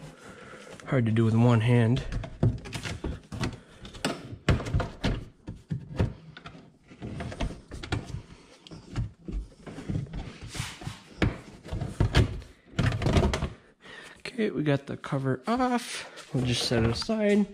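A hard plastic cover knocks and scrapes as hands lift it out.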